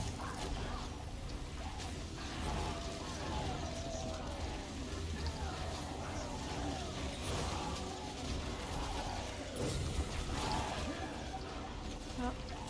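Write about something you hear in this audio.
Fantasy battle sounds clash, crackle and whoosh steadily.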